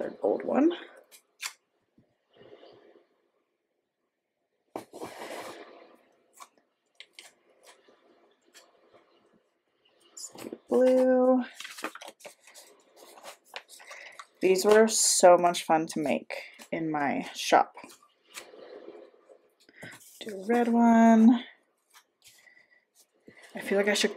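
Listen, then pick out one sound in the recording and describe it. Paper rustles and taps as stickers are peeled and pressed down by hand.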